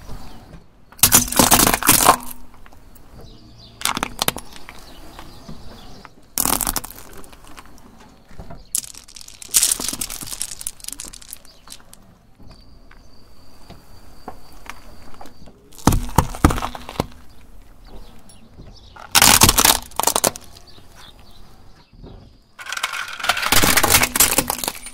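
A car tyre rolls over objects, crushing and cracking them with loud bursts.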